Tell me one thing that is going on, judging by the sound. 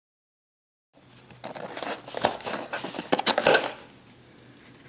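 A cardboard box rustles as hands open it.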